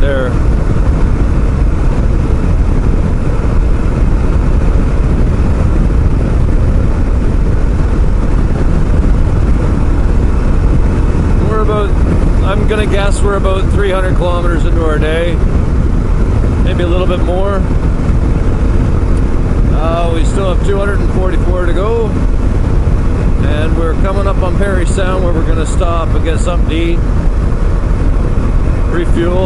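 Wind roars loudly and steadily past the rider.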